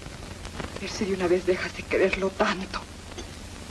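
A young woman speaks with feeling, heard through an old film soundtrack.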